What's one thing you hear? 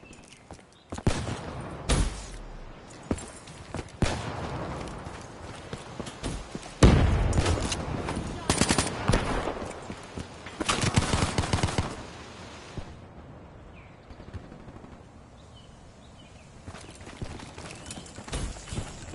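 Rapid gunshots crack in loud bursts.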